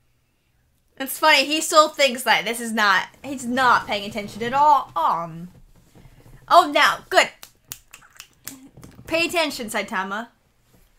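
A young woman talks and laughs with animation, close to a microphone.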